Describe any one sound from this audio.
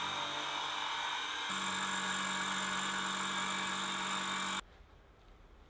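A milling machine whirs loudly as its cutter grinds through metal.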